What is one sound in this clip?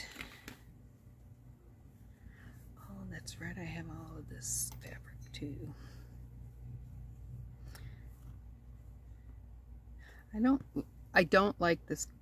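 Fabric rustles softly as hands sort through it.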